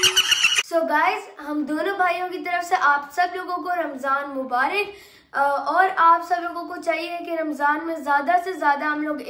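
A teenage boy talks loudly and with animation close by.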